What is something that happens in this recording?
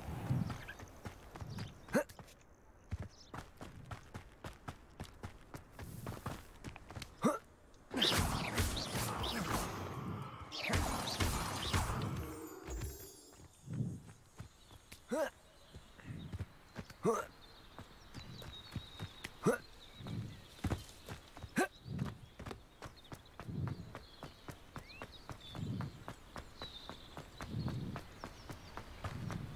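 Footsteps run quickly over grass and stone.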